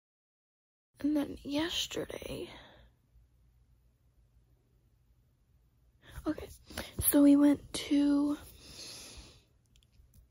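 A young girl speaks close by, with animation and in short bursts.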